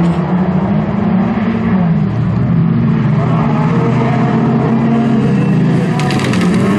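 Several racing car engines roar loudly at high revs.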